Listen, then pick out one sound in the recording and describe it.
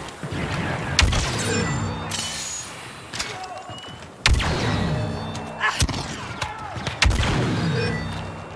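A rifle fires loud, sharp shots that boom and echo away.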